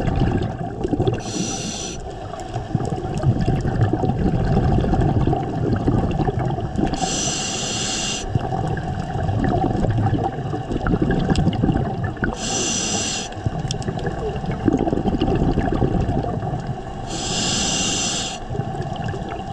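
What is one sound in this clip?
Water rumbles and swirls steadily all around, heard underwater.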